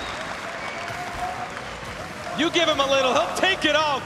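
A large crowd cheers and shouts in a big echoing hall.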